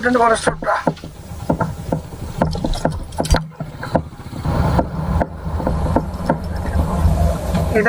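Tyres rumble and bump over a rough dirt road.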